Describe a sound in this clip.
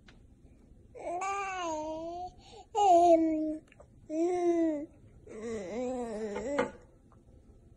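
A baby coos and squeals with glee close by.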